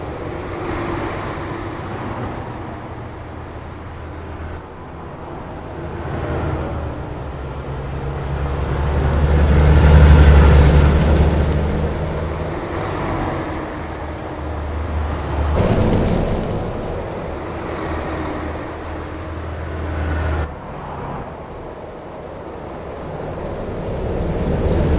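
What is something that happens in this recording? A heavy truck engine hums steadily.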